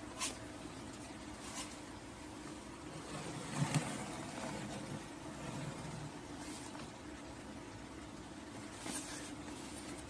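Hands pick up a cardboard box and rustle against it.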